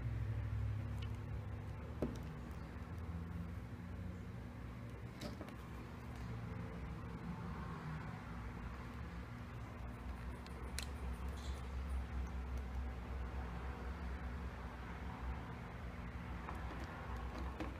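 A hand handles a small plastic handheld console, with faint clicks and taps.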